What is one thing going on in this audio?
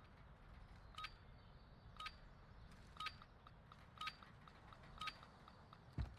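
A countdown timer beeps once a second.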